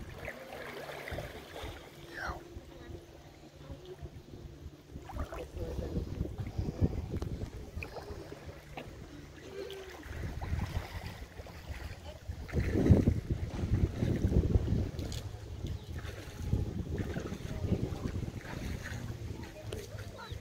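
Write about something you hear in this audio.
Drops of water patter into a shallow puddle.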